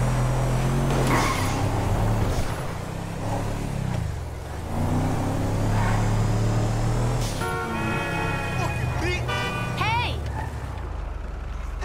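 A truck engine roars steadily as the truck drives along a street.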